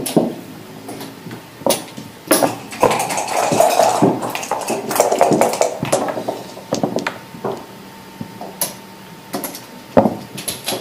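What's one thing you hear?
Backgammon checkers click and clack against a wooden board.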